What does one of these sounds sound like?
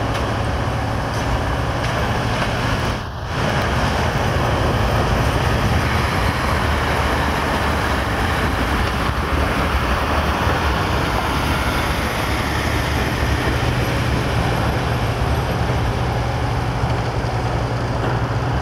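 A passenger train rumbles past on the tracks and slowly fades into the distance.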